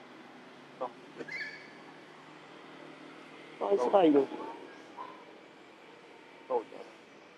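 A young monkey squeals and whimpers close by.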